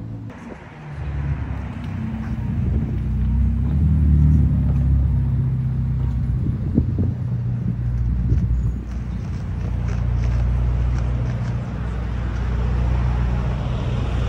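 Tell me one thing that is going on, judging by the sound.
A sports car engine revs and pulls away.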